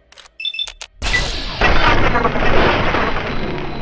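An energy weapon fires with a loud crackling blast.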